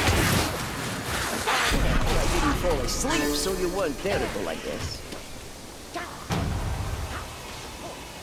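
A heavy weapon swings and strikes in a close fight.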